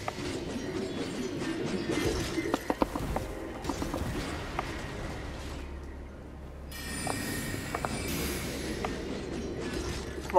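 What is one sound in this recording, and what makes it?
Magic spells whoosh and shimmer.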